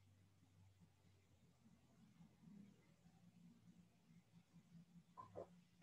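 A mug is set down on the floor with a soft knock.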